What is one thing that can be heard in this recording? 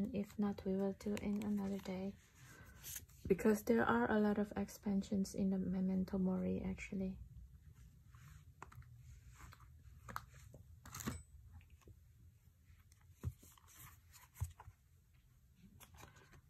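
Paper cards rustle and slap softly as they are handled and shuffled.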